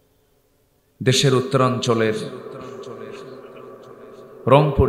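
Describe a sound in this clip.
A man preaches loudly and with fervour into a microphone, heard through loudspeakers with echo.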